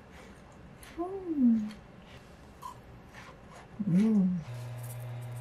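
A young woman hums with pleasure close by.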